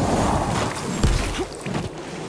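A heavy blow lands with a loud crunch.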